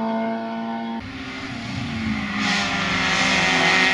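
A second rally car engine revs loudly as the car approaches.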